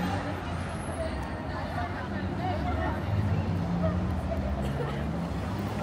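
Men and women chat faintly nearby.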